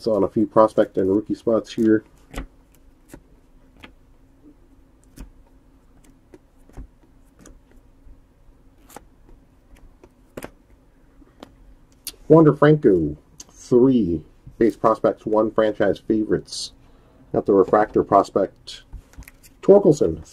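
Trading cards rustle and slide against each other in a person's hands.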